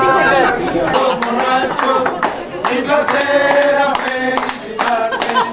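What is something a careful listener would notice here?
Several people clap their hands.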